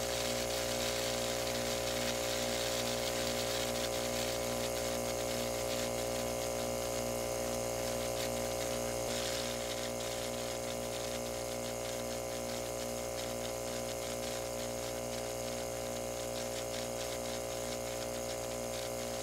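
An electric pump motor hums steadily nearby.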